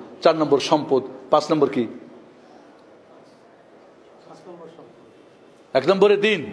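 A man preaches forcefully into a microphone, in bursts with pauses, his voice echoing in a large hall.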